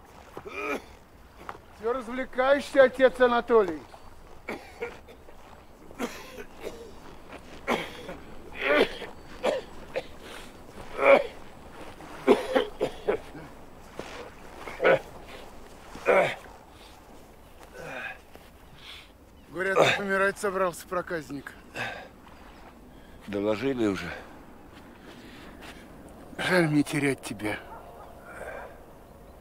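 A middle-aged man speaks in a low, calm voice close by.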